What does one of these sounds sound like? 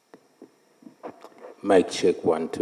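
A man speaks earnestly into a microphone.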